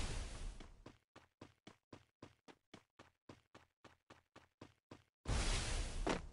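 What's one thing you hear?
Footsteps crunch quickly and evenly on snow.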